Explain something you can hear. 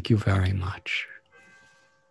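An elderly man speaks briefly over an online call.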